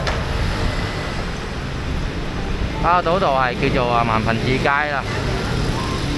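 Motorbike engines hum as they pass by on a street.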